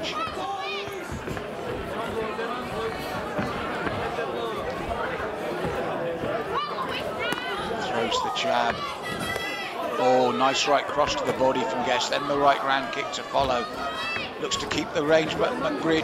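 A crowd murmurs and shouts in a large hall.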